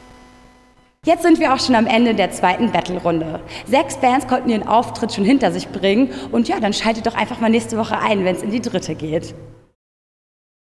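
A young woman speaks with animation into a microphone close by.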